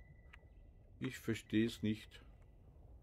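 A man speaks briefly through a headset microphone.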